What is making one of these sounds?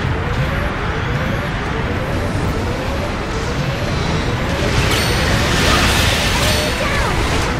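A robot's thrusters roar steadily.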